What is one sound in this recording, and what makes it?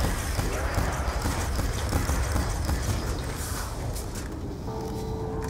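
Gunfire crackles rapidly.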